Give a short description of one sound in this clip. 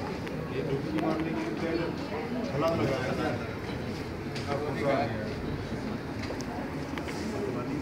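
Several men murmur and chat nearby.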